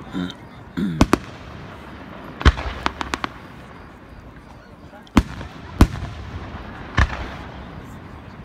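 Fireworks burst with loud booms and sharp bangs, echoing afterwards.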